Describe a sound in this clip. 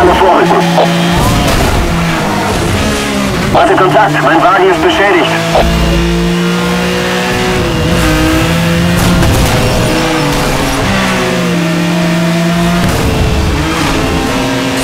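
A racing car engine roars at high speed.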